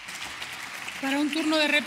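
A woman speaks into a microphone.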